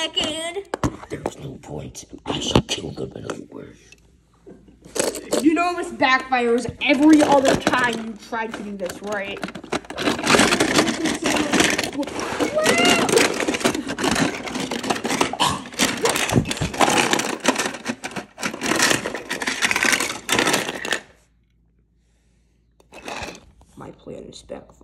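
Plastic toy cars clatter and knock against a plastic toy building.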